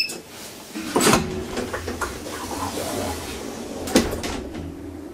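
Elevator doors slide shut.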